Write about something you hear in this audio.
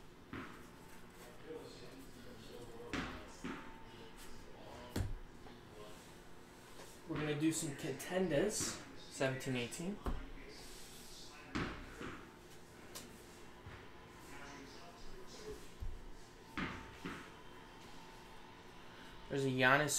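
Trading cards rustle and tap as they are handled and stacked.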